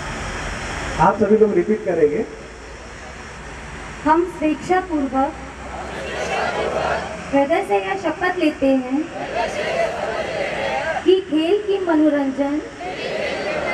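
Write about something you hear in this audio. A man recites an oath loudly, line by line.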